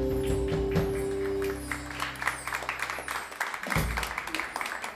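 A band plays live and ends a tune with a final hit.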